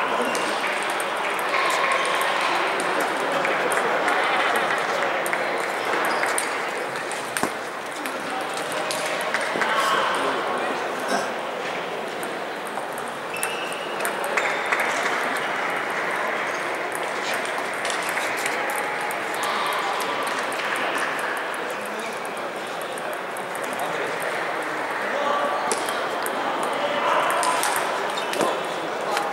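A ping-pong ball clicks sharply against paddles and a table in a large echoing hall.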